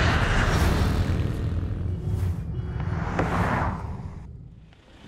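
Motorbike engines hum in traffic.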